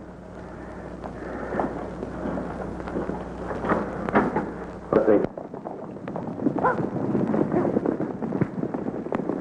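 Horses' hooves pound on a dirt road as riders gallop by.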